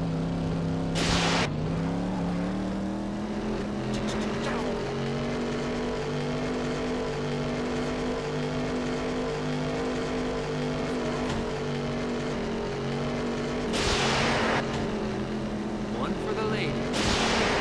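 Tyres skid and crunch over sand in short bursts.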